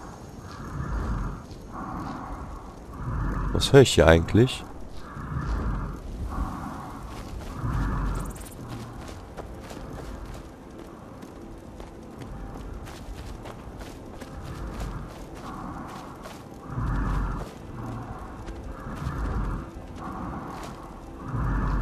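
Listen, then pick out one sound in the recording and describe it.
Footsteps crunch through dry grass at a steady walking pace.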